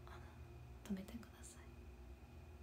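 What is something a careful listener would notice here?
A young woman speaks a few soft words close by.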